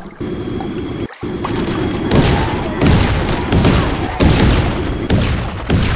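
Small cannons fire in rapid bursts.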